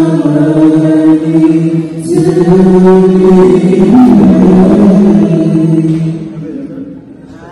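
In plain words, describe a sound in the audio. A group of singers sings together through microphones in a large echoing hall.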